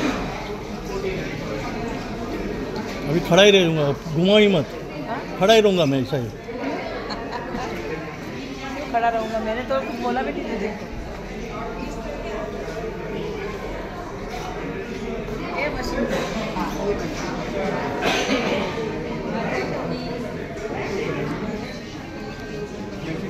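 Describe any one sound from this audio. A crowd of people chatters in an echoing hall.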